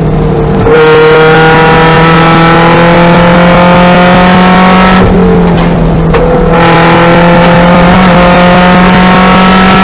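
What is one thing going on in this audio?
A race car engine roars loudly at high revs, its pitch rising as it accelerates.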